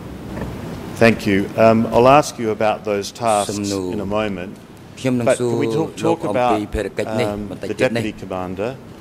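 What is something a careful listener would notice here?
A middle-aged man speaks calmly and firmly into a microphone.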